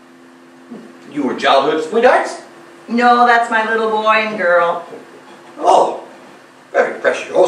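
An elderly man speaks loudly and expressively in a small echoing hall.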